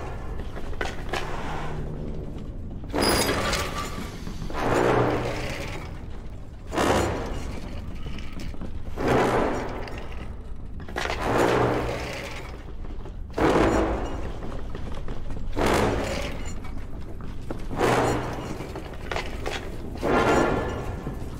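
A hanging lamp creaks as it swings back and forth.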